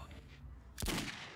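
A gunshot bangs sharply.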